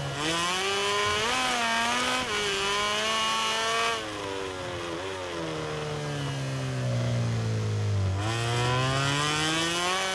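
A motorcycle engine revs high, its pitch rising and falling with gear changes.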